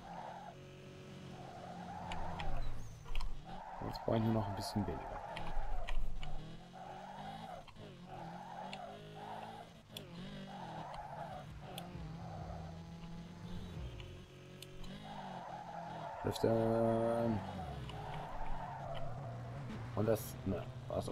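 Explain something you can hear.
A car engine revs hard, rising and falling with gear changes.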